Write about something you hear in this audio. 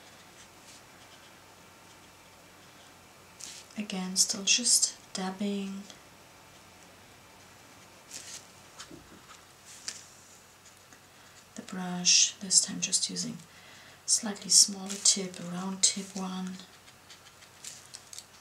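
A paintbrush dabs on watercolour paper.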